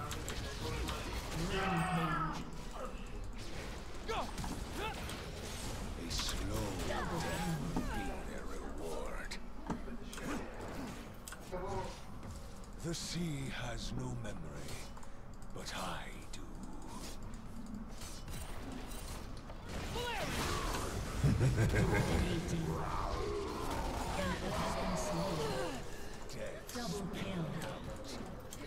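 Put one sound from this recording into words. Fantasy battle sound effects whoosh, zap and clash in quick bursts.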